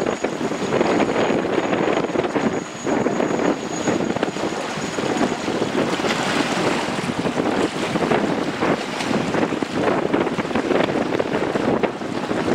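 Wind blows hard across an open waterfront.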